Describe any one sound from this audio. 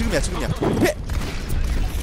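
Gunfire crackles in quick bursts.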